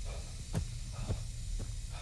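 Footsteps run over dry leaves and twigs.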